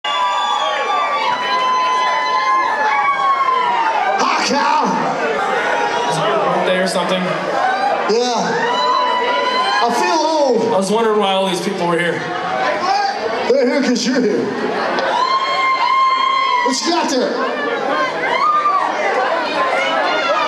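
Electric guitars play loud distorted riffs.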